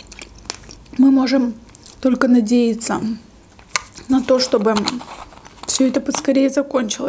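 A young woman speaks softly and calmly close to a microphone.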